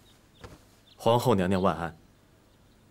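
A man speaks loudly and formally, close by.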